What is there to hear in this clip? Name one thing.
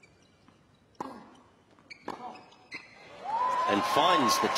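A tennis racket strikes a ball with sharp thwacks.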